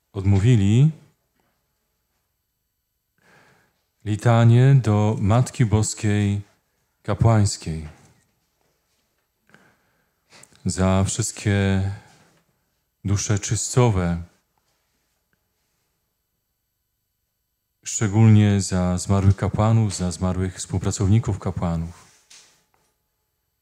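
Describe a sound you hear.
A man speaks calmly and clearly into a microphone, in short phrases with pauses.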